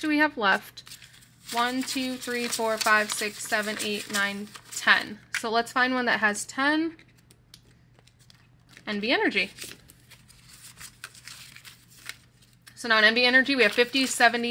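Paper banknotes rustle as they are handled and counted.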